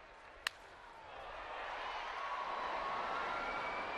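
A large crowd cheers, swelling louder.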